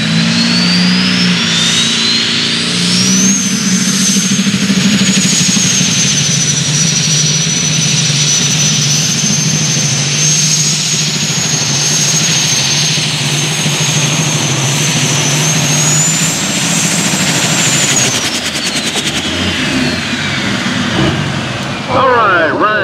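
A turbocharger whines shrilly, rising in pitch and later falling away.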